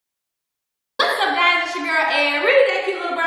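A young woman sings with animation, close by.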